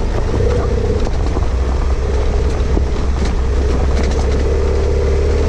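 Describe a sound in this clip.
Tyres crunch over loose gravel.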